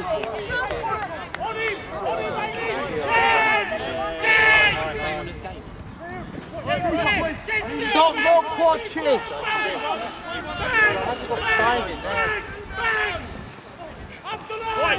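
Young men shout to one another across an open field outdoors.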